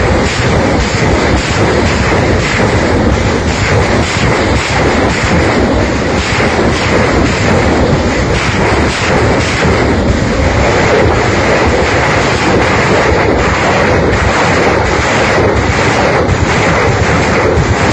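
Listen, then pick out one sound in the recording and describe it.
Rockets launch with a continuous loud roaring rush.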